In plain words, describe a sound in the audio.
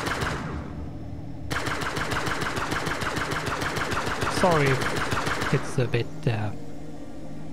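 Laser guns fire in rapid bursts.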